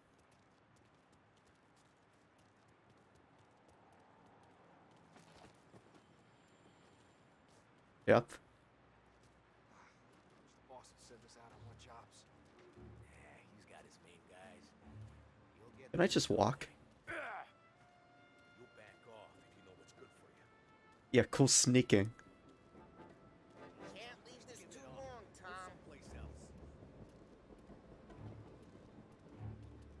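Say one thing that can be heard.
Footsteps tap on pavement at a walking pace.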